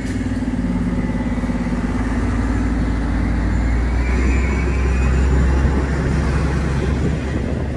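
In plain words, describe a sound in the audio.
A bus engine rumbles loudly close by.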